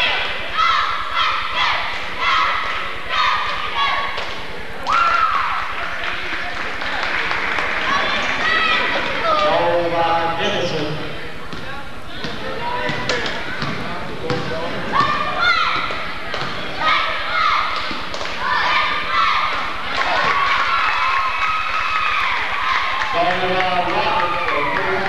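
Sneakers squeak on a wooden court.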